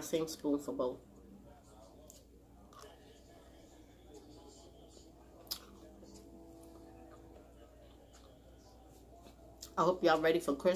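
A woman chews food close to a microphone.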